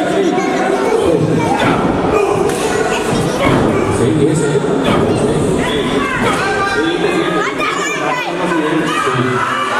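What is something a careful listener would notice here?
A crowd of men and women shouts and cheers in an echoing hall.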